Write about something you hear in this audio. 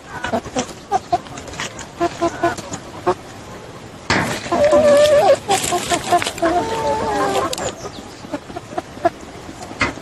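A flock of chickens clucks.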